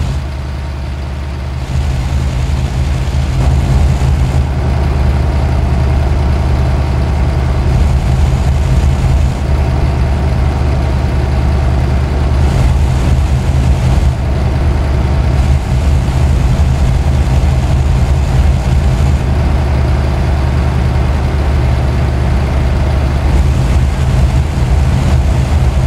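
Tyres roll steadily over the road.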